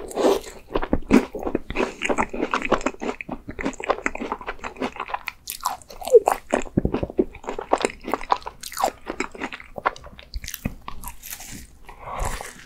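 A young man bites into a crisp pastry close to a microphone.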